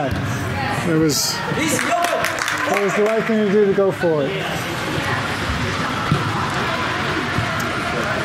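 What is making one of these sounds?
Spectators call out and cheer from the sideline.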